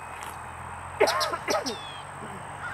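A crow caws loudly nearby.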